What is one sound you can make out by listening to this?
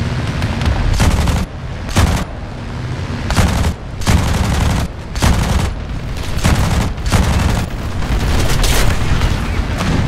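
Machine guns fire in loud bursts.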